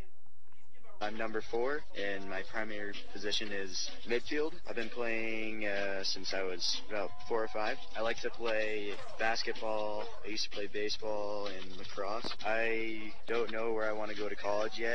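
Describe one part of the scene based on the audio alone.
A group of young people sings together outdoors.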